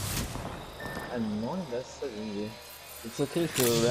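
A syringe is injected with a short hiss and click.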